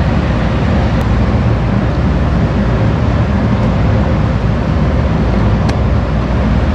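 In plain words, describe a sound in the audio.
A screwdriver clicks faintly against metal parts.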